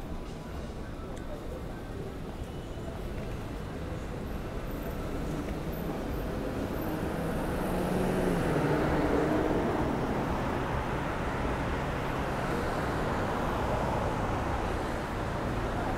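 Traffic hisses by on a wet street nearby, swelling and easing.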